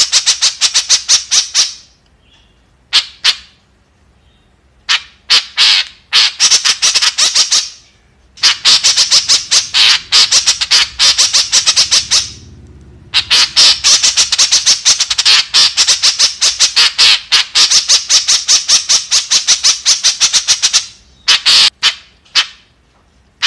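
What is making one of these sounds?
A bird calls in fast, rapid bursts of sharp, high chattering notes.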